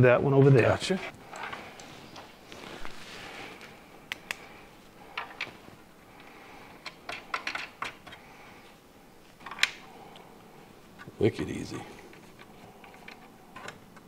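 Metal parts click and clack as they are fitted together.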